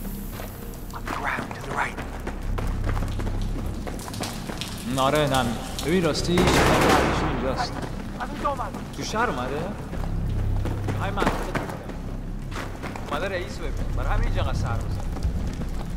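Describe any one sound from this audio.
Men speak to each other in urgent, hushed voices.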